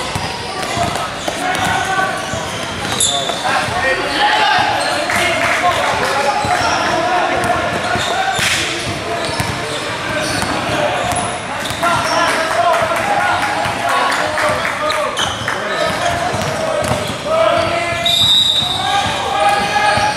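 A basketball is dribbled on a gym floor.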